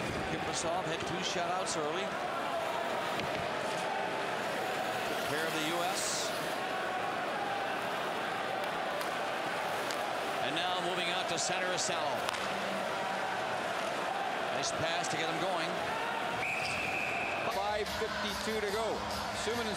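A large crowd roars steadily in a big echoing arena.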